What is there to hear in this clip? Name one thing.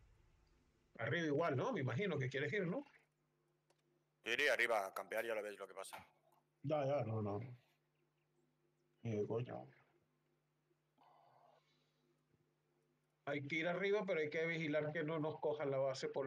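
A middle-aged man talks with animation into a close microphone, in short bursts.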